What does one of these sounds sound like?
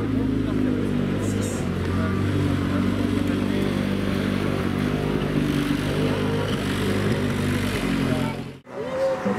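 A rally car engine idles with a deep, uneven burble close by.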